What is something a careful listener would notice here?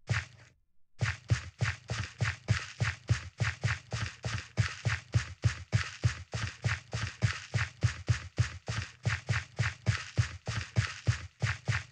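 Footsteps thud in quick rhythm on dirt in a block-building video game.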